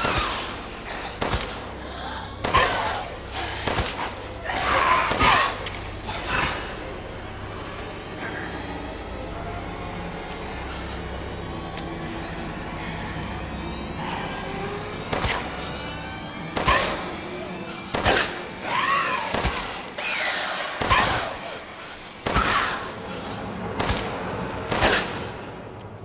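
A pistol fires loud shots that echo in a stone tunnel.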